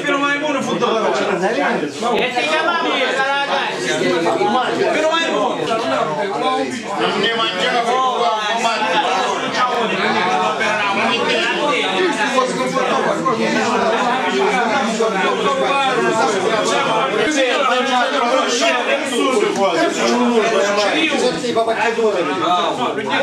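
A crowd of men chatter loudly all around, close by.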